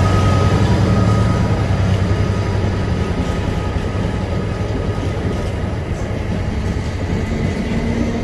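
A diesel locomotive engine rumbles deeply as it passes close by.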